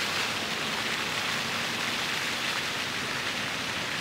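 Water splashes and sprays steadily from a fountain nearby.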